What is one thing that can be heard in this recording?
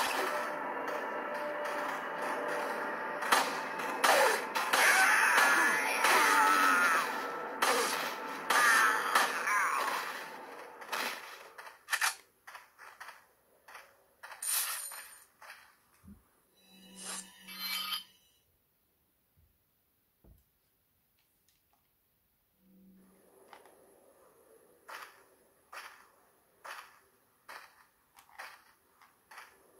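Video game sounds and music play through a small phone speaker.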